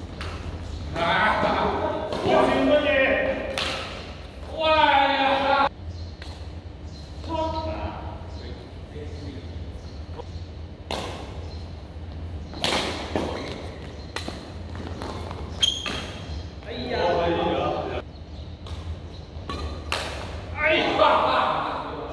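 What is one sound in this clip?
Men shout and call out during play, echoing in a large hall.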